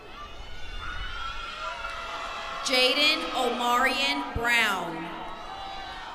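A young woman shouts with joy nearby.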